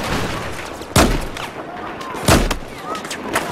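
A sniper rifle fires two sharp shots.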